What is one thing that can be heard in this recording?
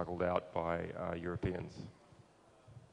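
A man speaks calmly into a microphone through loudspeakers.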